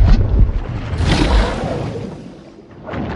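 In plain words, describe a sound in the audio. Water splashes loudly as a creature plunges in.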